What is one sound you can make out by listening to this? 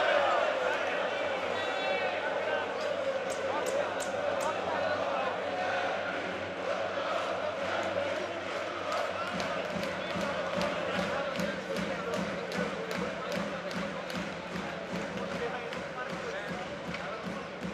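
A crowd cheers and chants in a large echoing arena.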